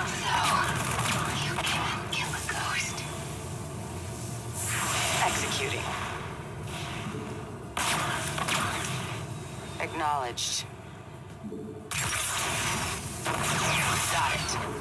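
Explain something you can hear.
Video game gunfire rattles in bursts.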